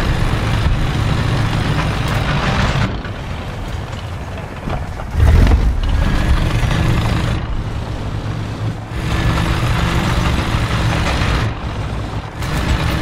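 A tank's diesel engine rumbles as the tank drives.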